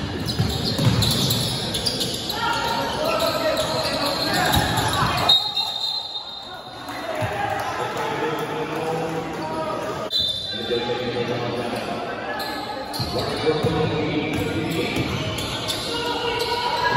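Sneakers squeak on a hardwood basketball court.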